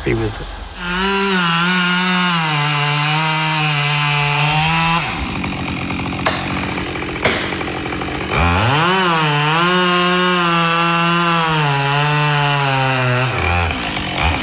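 A chainsaw roars and revs while cutting wood.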